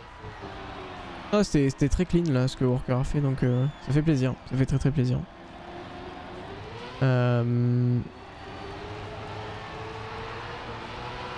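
A racing car engine whines steadily.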